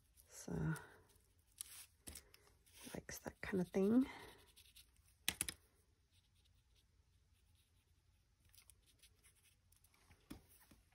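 A sponge tool dabs and rubs softly on paper.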